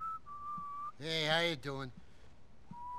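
A man greets someone casually nearby.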